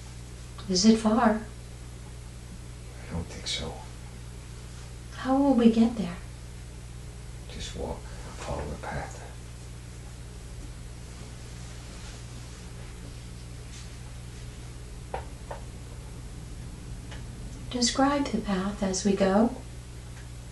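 An elderly woman mumbles and groans sleepily close by.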